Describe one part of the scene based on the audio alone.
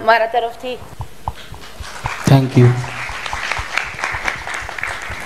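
A woman claps her hands in rhythm.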